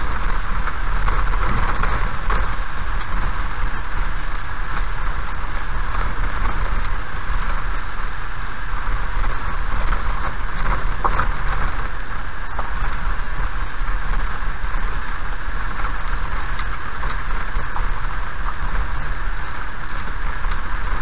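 Tyres rumble over a gravel road.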